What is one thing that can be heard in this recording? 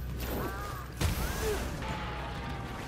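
Debris crashes and clatters as something is smashed apart.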